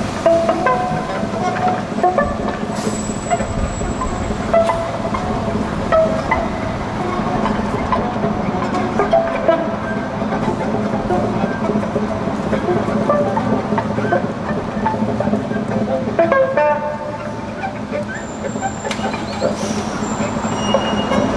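A cello is bowed.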